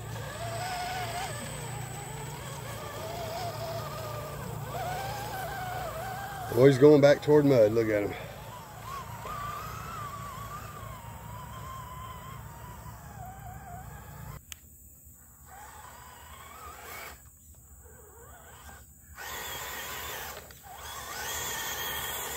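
A small electric motor whines, rising and falling in pitch as a toy truck crawls.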